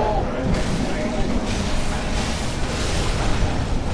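A blade slashes into flesh.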